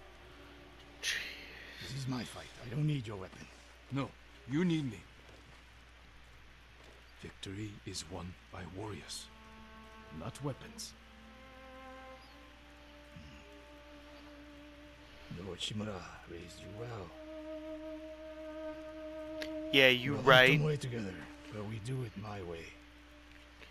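A middle-aged man speaks sternly and calmly, close by.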